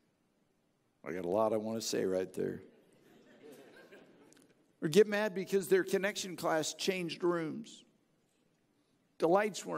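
A middle-aged man speaks calmly through a headset microphone, with pauses.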